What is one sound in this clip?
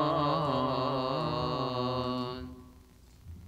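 A group of men chant together in a large echoing hall.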